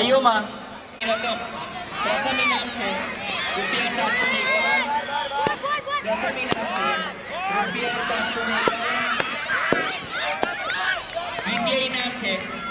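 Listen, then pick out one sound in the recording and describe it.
A crowd of children shouts and cheers excitedly outdoors.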